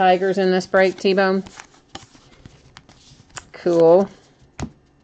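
Stiff trading cards flick and rustle as they are shuffled by hand.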